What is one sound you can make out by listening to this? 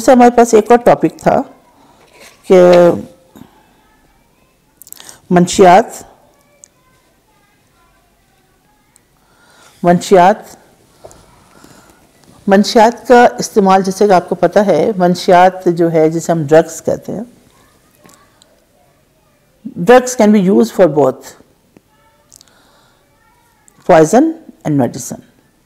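A middle-aged woman speaks close to a microphone, reading aloud and then talking with feeling, with pauses.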